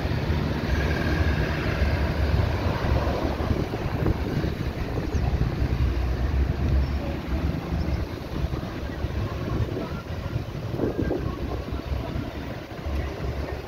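Cars drive past close by on an asphalt road.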